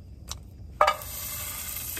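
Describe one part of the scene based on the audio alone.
Metal tongs clink against a pan.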